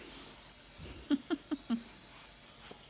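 A baby giggles and babbles close by.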